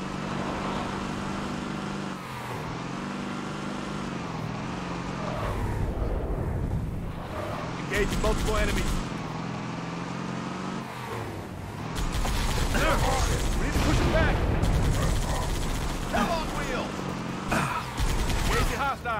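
A vehicle engine hums and whines as it drives over rough ground.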